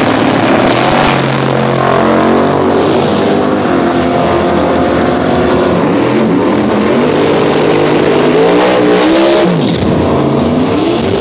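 Two drag racing cars launch with a roar and race away into the distance.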